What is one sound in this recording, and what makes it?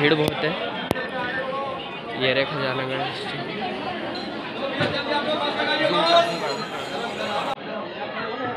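A crowd of men and women chatter and call out all around in an echoing hall.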